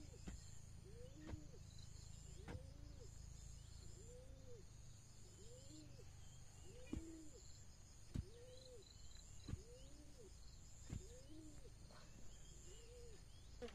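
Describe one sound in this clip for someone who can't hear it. A kitten mews repeatedly.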